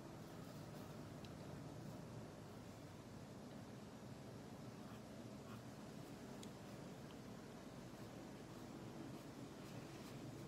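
A felt-tip marker scratches softly across paper.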